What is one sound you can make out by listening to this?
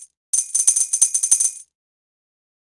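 Quick bright chimes ring out as gems are collected.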